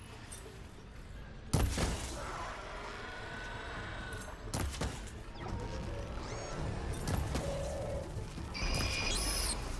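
A bow is drawn and arrows whoosh away.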